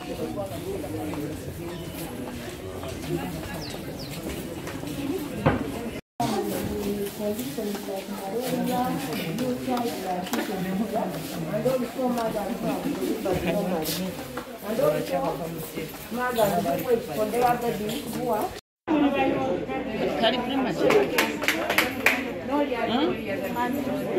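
A crowd of men and women murmur and talk at once close by.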